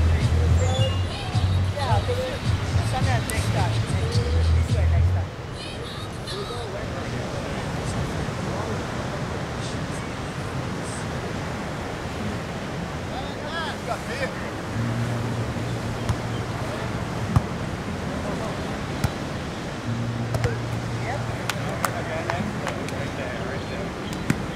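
Young men call out to each other in the distance.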